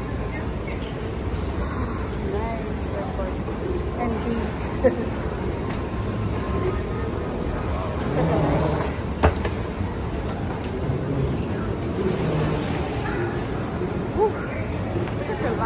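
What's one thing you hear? A crowd of travellers murmurs in a large echoing hall.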